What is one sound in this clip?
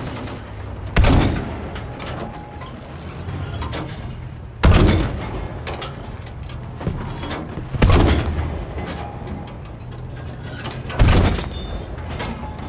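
A tank cannon fires loud booming shots that echo away.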